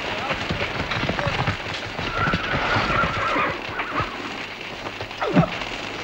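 Horses' hooves thud on the ground.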